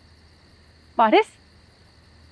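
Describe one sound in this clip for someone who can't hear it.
A young woman calls out loudly from a short distance.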